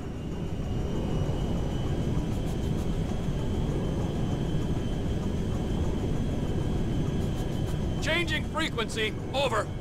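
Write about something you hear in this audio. Jet engines roar steadily as a large plane flies.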